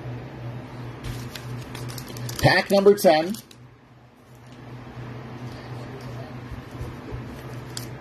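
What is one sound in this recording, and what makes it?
A foil card wrapper crinkles in someone's hands.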